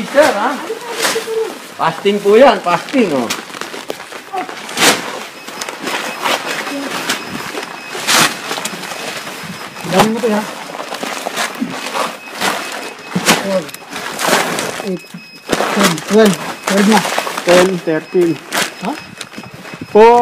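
Plastic bags of rice rustle as they are handled.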